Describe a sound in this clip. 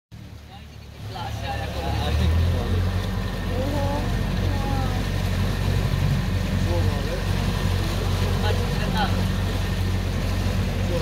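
A boat engine hums steadily and close by.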